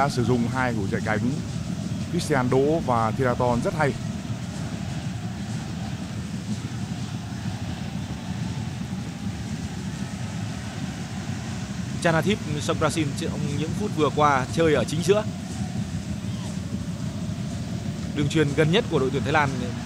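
A large crowd murmurs and cheers steadily in an open stadium.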